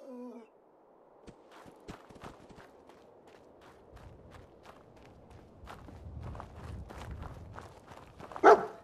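Footsteps crunch over dry ground.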